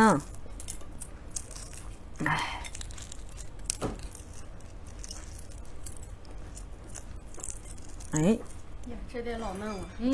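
Eggshell cracks and crinkles as it is peeled.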